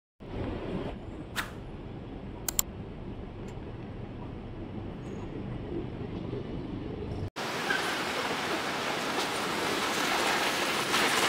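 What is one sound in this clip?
City traffic hums steadily along a busy street.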